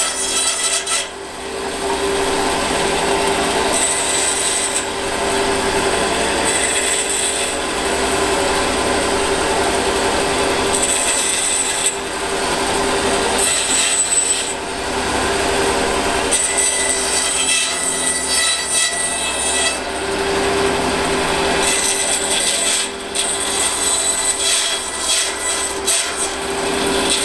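A scroll saw buzzes steadily as it cuts through wood.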